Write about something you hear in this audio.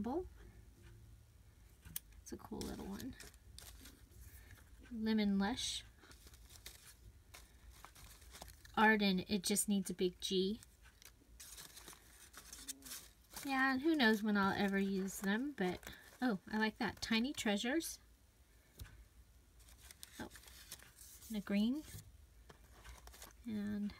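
Paper scraps rustle and shuffle as hands sort through them.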